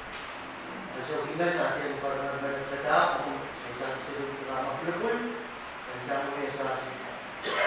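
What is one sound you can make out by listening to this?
A man speaks through a microphone over loudspeakers in a hall.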